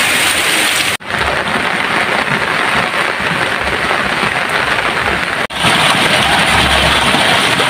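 Muddy water rushes and gurgles through a ditch.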